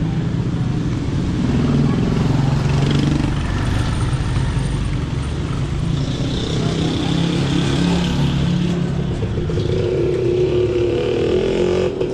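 Motorcycle-powered tricycles chug along the street nearby.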